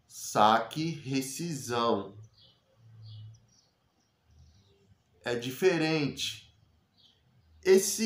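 A man speaks calmly and close by, with pauses.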